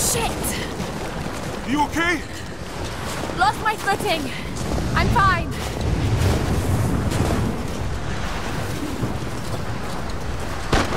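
Wind blows steadily across an open mountainside.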